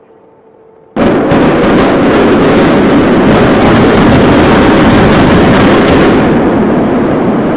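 Explosive charges blast with a sudden, deafening roar.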